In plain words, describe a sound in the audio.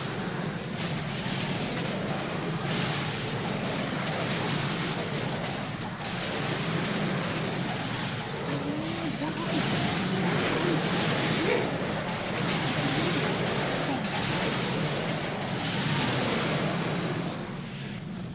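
Magic spells crackle and whoosh in rapid bursts.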